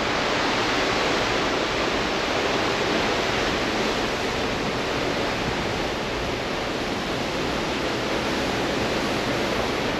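Strong wind roars steadily across the microphone outdoors.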